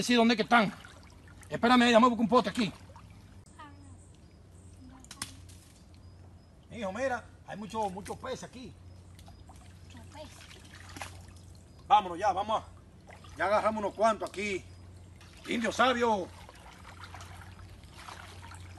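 Water splashes as people wade in a shallow stream.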